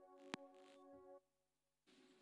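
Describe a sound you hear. A keyboard plays a sustained chord.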